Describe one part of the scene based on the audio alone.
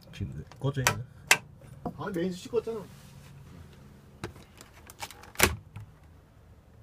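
Hard plastic clicks and knocks up close as it is handled.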